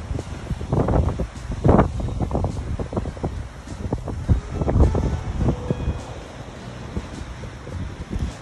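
Ocean waves crash and surge against rocks.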